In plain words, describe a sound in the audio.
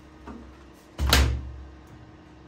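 A washing machine door shuts with a thud.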